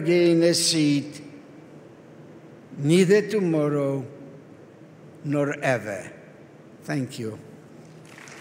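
An elderly man reads out slowly into a microphone.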